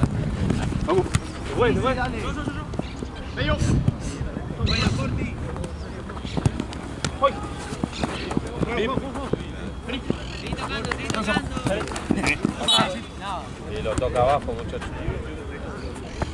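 Young men shout to each other outdoors across a playing field.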